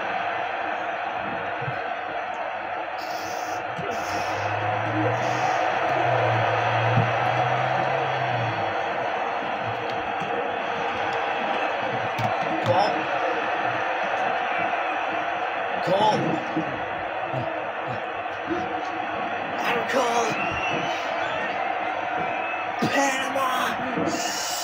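A large crowd cheers and murmurs steadily.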